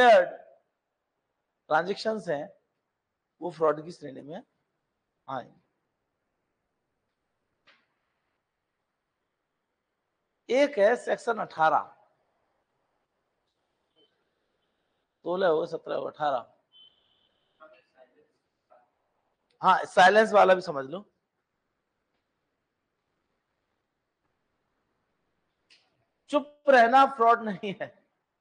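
A middle-aged man speaks calmly and clearly through a microphone, in bursts with pauses.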